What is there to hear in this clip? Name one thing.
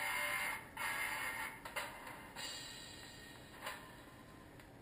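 Fingers rub and tap against a small handheld device.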